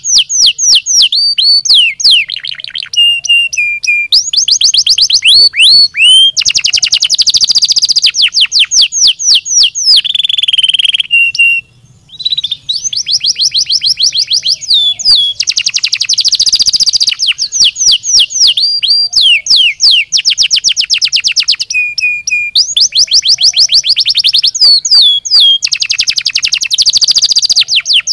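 A canary sings close by in long, fast trills and chirps.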